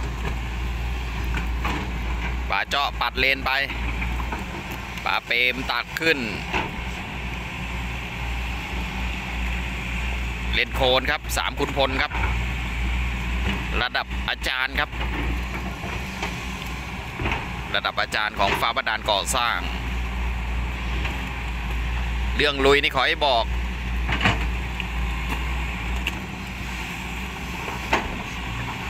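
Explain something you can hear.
A diesel tracked excavator engine rumbles as it works.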